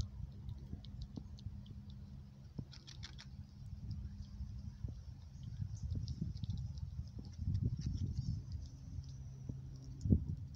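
A squirrel gnaws and chews an avocado close up.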